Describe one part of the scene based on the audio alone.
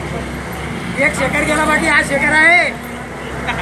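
Men talk nearby in a crowd.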